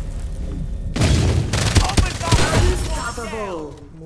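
Rapid gunshots crack in a loud burst.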